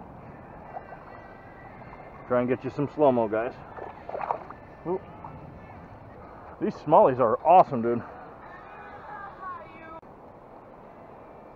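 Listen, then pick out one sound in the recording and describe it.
Shallow river water gently laps over rocks.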